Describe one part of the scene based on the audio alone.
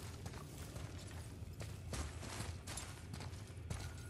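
An axe strikes a crystal and it shatters with a glassy crash.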